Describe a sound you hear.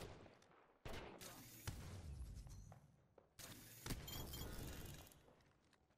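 Electric bolts crackle and boom.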